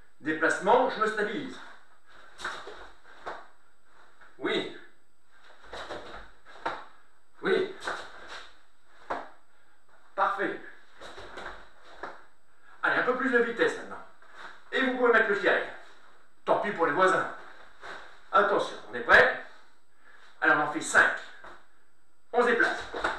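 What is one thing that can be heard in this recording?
A middle-aged man speaks calmly and clearly, close to the microphone.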